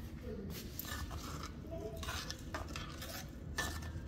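A spoon scrapes and stirs in a metal pan.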